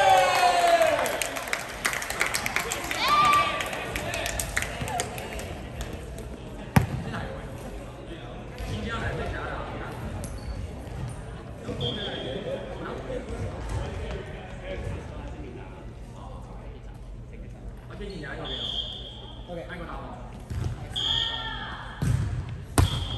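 Young people call out and chatter in an echoing gym.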